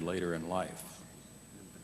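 A woman speaks briefly through a microphone.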